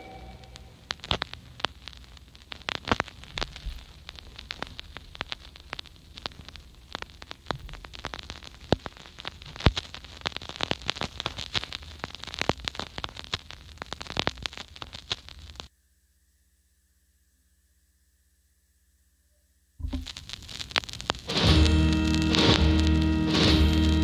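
Electronic dance music with a thumping beat plays from speakers.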